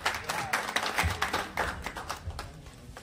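Several people clap their hands.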